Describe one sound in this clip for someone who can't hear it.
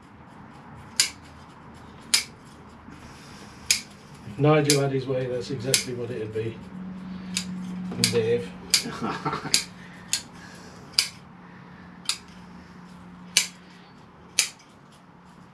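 Pruning shears snip branches in short, sharp clicks.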